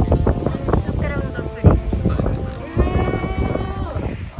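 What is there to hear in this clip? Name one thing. Young women laugh and chatter close by.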